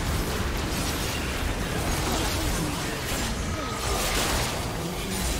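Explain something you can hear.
Game spell effects crackle and burst in a fierce fight.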